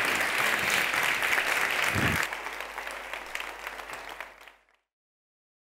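An audience applauds in a large hall, then the clapping fades away.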